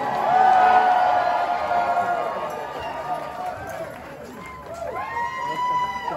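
A live band plays loudly in a large echoing hall.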